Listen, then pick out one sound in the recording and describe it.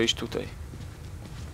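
A young man speaks briefly and close into a headset microphone.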